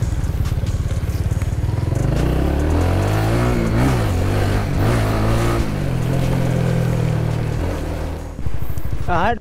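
A motor scooter engine hums and rises in pitch as it rides.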